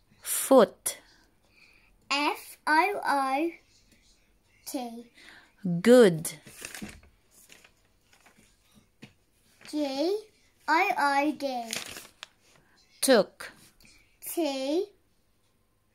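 A young girl speaks close by in short, lively phrases.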